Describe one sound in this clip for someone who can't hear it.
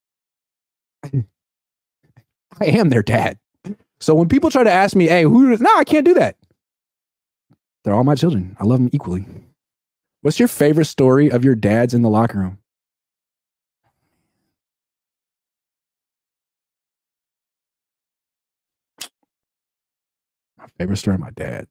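A man speaks calmly and close into a microphone, with pauses.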